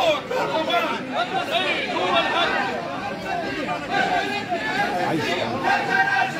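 A crowd of men and women chants and shouts loudly outdoors, close by.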